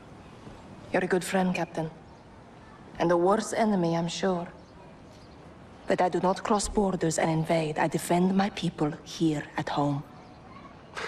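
A young woman speaks in a low, serious voice, close by.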